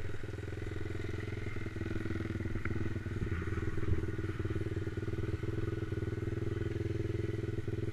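A small dirt bike engine idles with a fast, steady putter close by.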